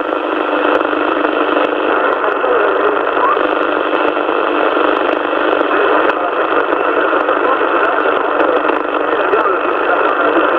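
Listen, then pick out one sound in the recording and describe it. A radio receiver hisses with crackling static.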